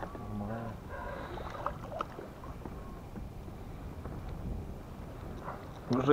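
A hooked fish splashes at the surface of the water.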